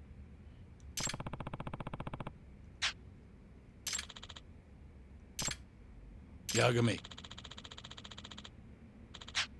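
Rapid electronic blips chatter as dialogue text scrolls.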